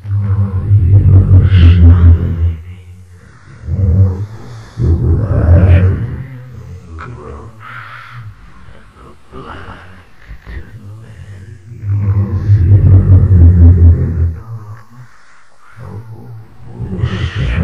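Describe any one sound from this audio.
A man speaks close to a microphone in a low, calm voice, with pauses.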